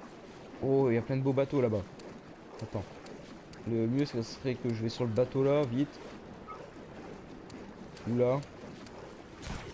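Water splashes softly with swimming strokes.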